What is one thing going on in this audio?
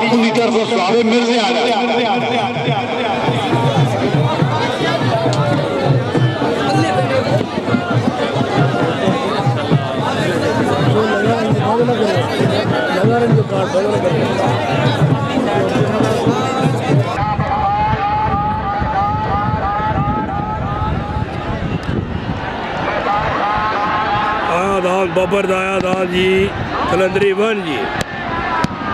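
A crowd of men chatters and calls out outdoors.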